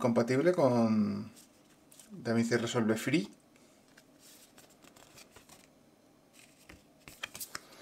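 Paper cards rustle and flap in hands.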